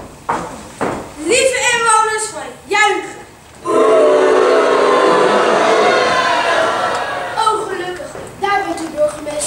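A second man answers loudly on stage, heard in an echoing hall.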